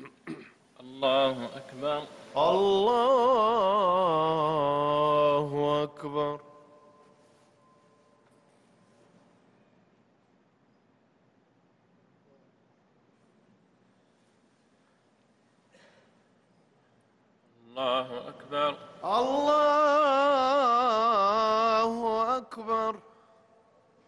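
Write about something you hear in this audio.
A man chants in a long, drawn-out melodic call through loudspeakers, echoing in a large hall.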